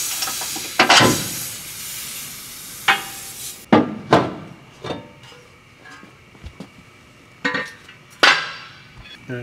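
Metal parts clank and knock.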